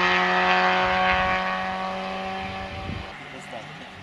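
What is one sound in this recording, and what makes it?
A car engine drones steadily in the distance.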